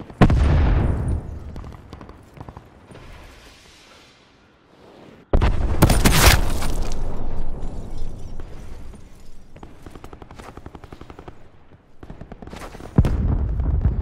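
A sniper rifle fires booming shots that echo away outdoors.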